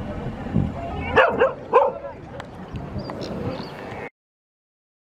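A colony of sea lions barks and grunts.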